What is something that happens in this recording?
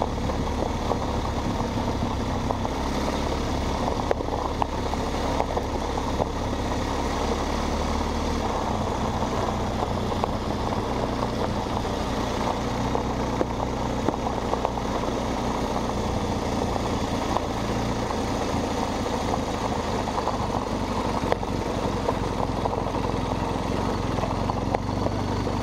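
Tyres crunch and rumble over gravel.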